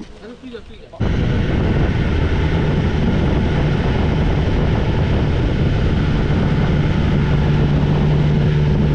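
A motorcycle engine roars steadily at speed.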